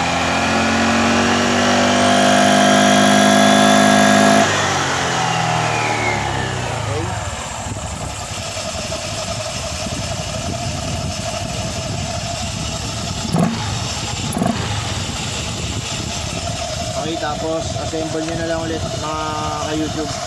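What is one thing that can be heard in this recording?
A drive belt whirs over spinning pulleys.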